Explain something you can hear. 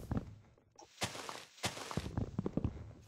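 Leafy blocks crunch and rustle as they are broken.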